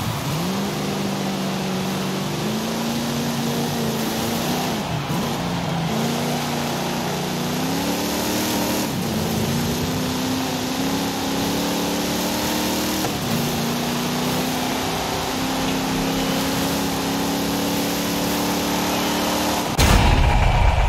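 A powerful car engine roars, rising in pitch as the car speeds up and dropping with each gear change.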